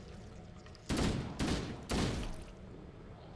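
Bursts of gunfire ring out loudly.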